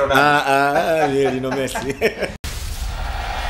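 A man speaks cheerfully close by.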